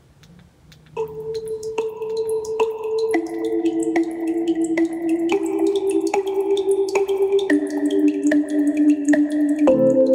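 Music plays from a speaker.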